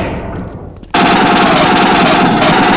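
A heavy gun fires a rapid burst of shots.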